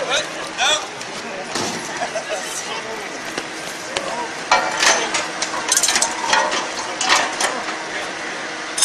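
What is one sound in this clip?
A crowd of onlookers chatters and cheers outdoors.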